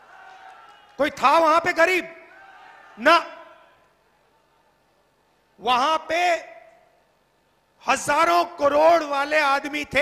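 A man speaks forcefully into a microphone over loudspeakers, with an outdoor echo.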